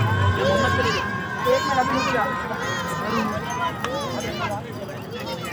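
A large crowd chatters and calls out in the open air.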